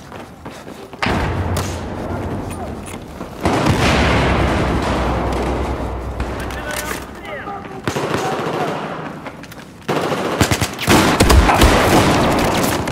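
Gunfire rattles in loud bursts, echoing in a corridor.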